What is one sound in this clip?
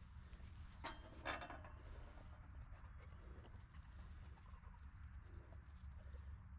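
A dog sniffs and rustles through grass.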